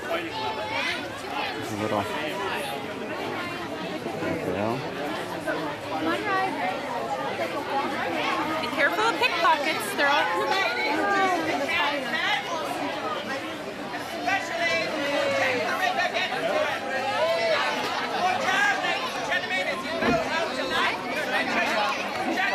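A large crowd of men, women and children chatters all around outdoors.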